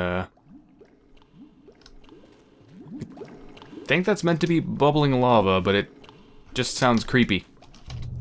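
Molten lava bubbles and gurgles.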